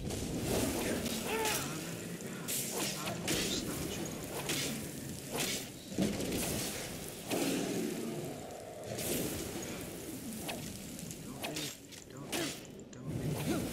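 A sword strikes hard with sharp blows.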